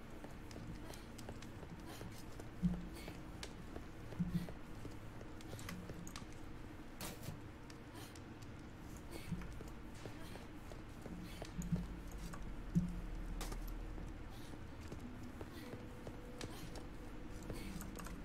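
Footsteps run across a hard stone floor.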